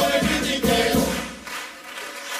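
A chorus of men sings loudly and then stops.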